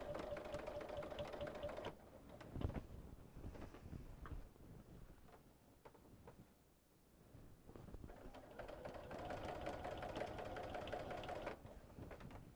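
A sewing machine stitches rapidly with a steady hum.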